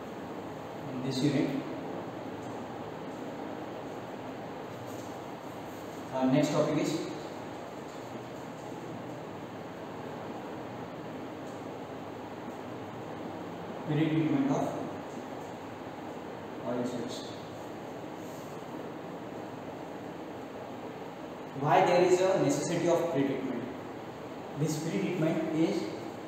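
A man speaks calmly in short bursts, nearby in a room.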